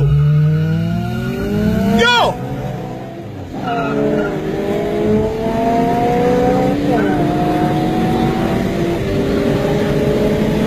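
Car engines rev hard, rising in pitch between gear changes.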